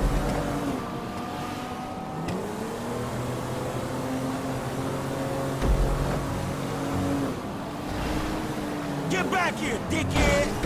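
A car engine hums and shifts through gears as the car drives through traffic.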